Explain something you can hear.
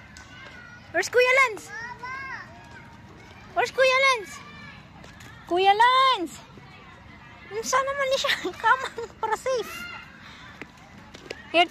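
A young child shouts and squeals excitedly nearby.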